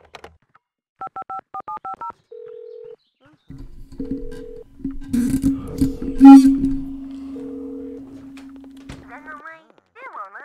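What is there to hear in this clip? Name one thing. A jukebox plays a few chiming notes and a short tune.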